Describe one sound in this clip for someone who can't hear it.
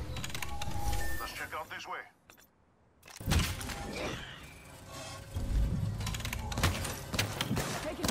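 Electronic beeps chime as a machine's menu opens.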